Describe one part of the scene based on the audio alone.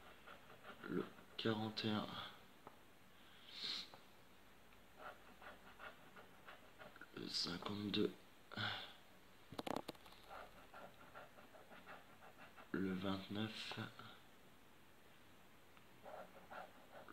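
A coin scratches and scrapes across a card in short bursts.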